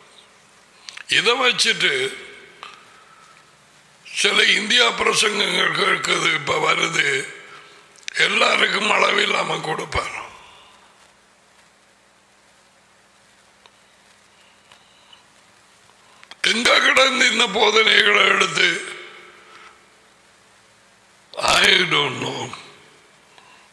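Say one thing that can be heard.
An older man speaks forcefully and with emphasis into a close microphone, in short bursts with pauses.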